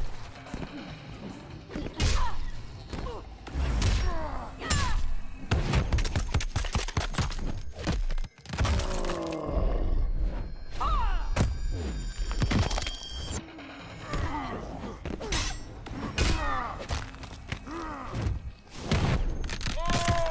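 Heavy blows land with loud thuds and crunches.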